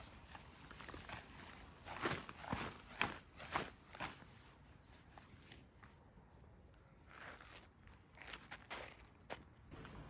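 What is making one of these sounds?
A fabric cape rustles and flaps as it is folded.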